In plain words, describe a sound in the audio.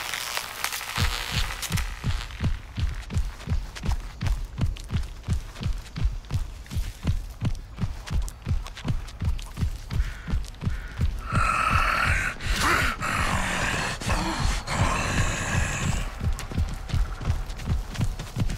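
Footsteps thud quickly on dirt as a man runs.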